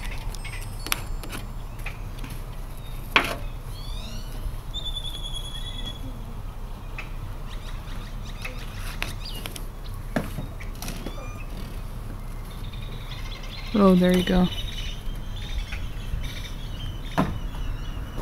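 Small plastic tools tap and click against a metal plate.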